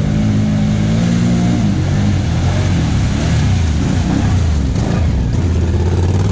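Tyres splash through mud.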